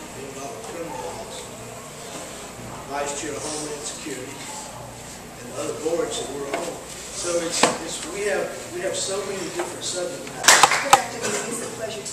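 An elderly man speaks into a microphone, heard over loudspeakers in a room.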